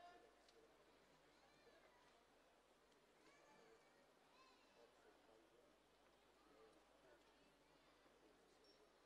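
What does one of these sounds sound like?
A crowd murmurs in a large open arena.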